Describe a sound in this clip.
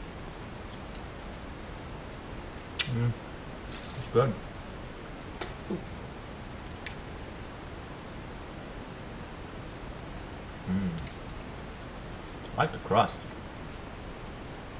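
Small objects click and rustle in a man's hands.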